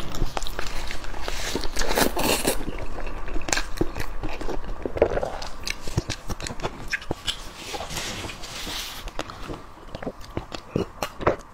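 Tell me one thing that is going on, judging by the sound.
A young woman chews food noisily close to a microphone.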